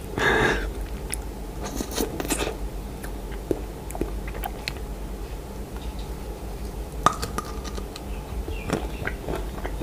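A young man chews wetly close to a microphone.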